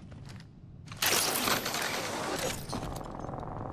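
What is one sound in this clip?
A zipline whirs loudly as a character slides along a cable.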